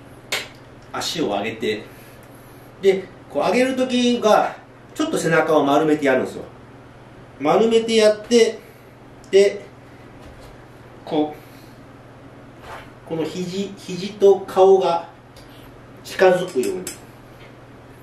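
A man talks close by, in short bursts.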